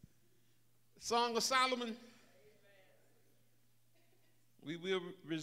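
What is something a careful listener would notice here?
An elderly man speaks with feeling into a microphone, in short bursts between pauses.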